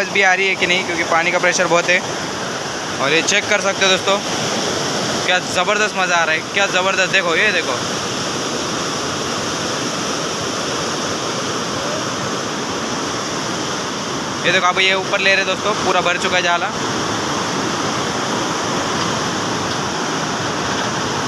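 Fast floodwater rushes and churns over rocks.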